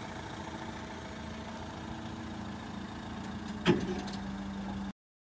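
A van engine idles with a steady hum.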